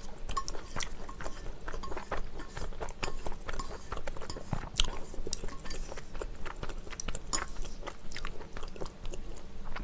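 Chopsticks click against a pan.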